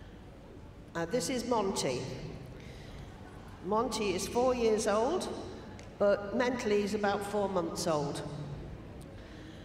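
An elderly woman speaks calmly through a microphone over loudspeakers.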